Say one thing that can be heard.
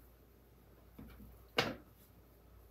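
Cards shuffle and tap on a table.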